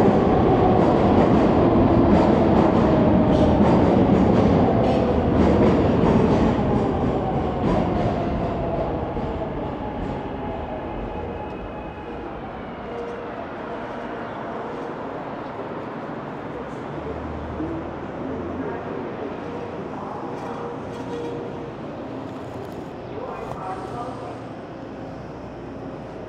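An electric bike's tyres roll along a pavement.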